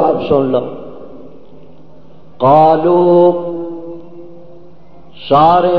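An elderly man preaches with drawn-out, sung phrases through a microphone in an echoing hall.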